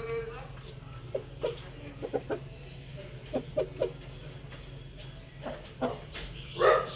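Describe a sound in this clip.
Hens cluck in short, quick bursts close by.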